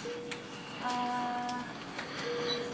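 A machine gives a short electronic chime.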